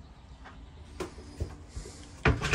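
A wooden cupboard door knocks shut.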